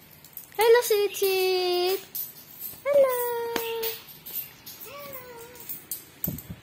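A young child calls out in a high, sing-song voice close by.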